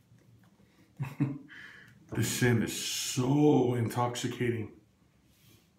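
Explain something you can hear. A middle-aged man talks casually, close to the microphone.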